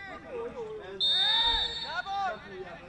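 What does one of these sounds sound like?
A referee's whistle blows sharply.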